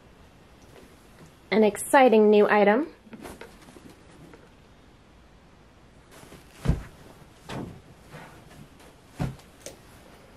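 A hand pats and rustles a soft cushion.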